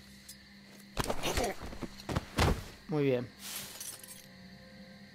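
Blows thud and scrape in a short close scuffle.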